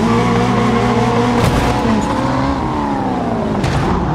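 A car crashes into another car with a loud thud.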